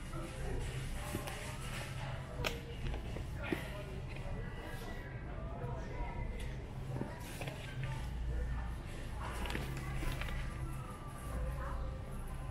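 A plastic bottle knocks and rubs as it is handled up close.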